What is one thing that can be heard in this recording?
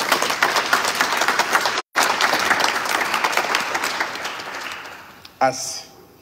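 An audience applauds in a large echoing hall, then the clapping dies away.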